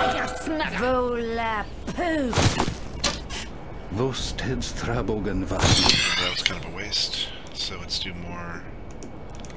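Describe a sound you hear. Magic spells whoosh and crackle in quick bursts.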